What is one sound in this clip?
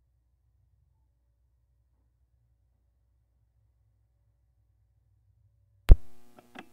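A turntable motor hums faintly.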